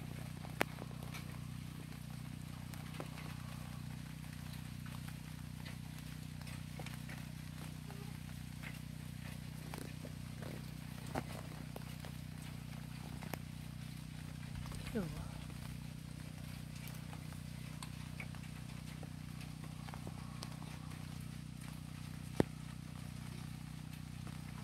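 Light rain falls steadily outdoors, with scattered drops pattering on a wooden deck.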